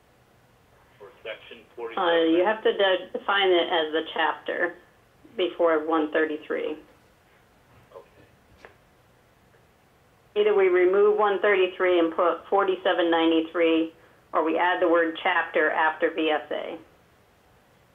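A man speaks calmly in short bursts with pauses.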